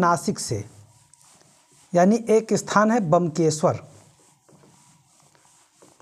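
A cloth rubs across a whiteboard.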